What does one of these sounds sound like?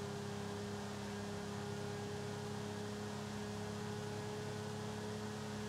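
A sports car engine hums steadily at high speed.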